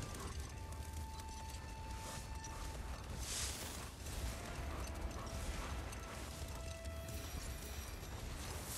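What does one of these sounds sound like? A sled's runners hiss steadily over snow.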